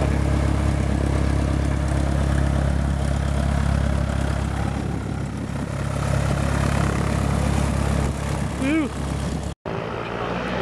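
A small propeller plane's engine idles with a low, steady rumble close by.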